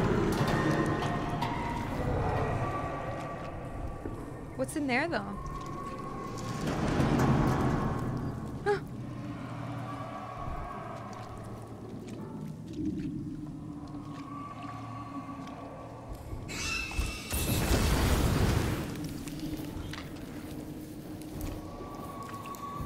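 A young woman talks calmly into a close microphone.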